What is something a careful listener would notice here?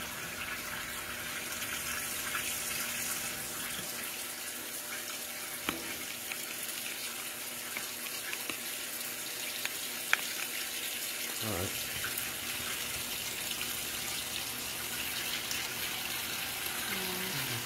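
Water swishes inside a washing machine.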